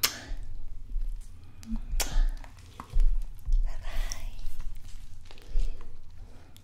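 A young woman whispers softly, very close to a microphone.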